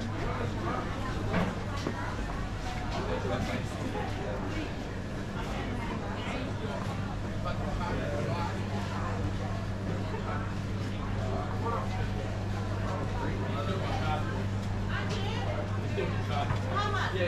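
Refrigerated display counters hum steadily.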